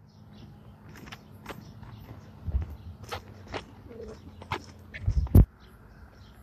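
Hooves crunch on gravel as a horse walks.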